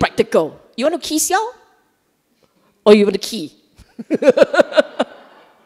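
A middle-aged woman speaks with animation into a microphone, in short bursts with pauses.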